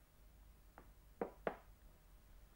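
A china plate clinks down onto a table.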